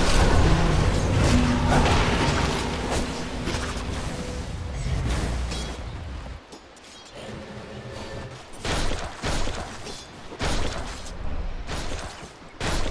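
Magic spells blast and crackle during a fight.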